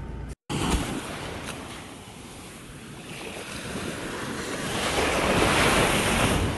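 Waves wash gently onto a sandy shore.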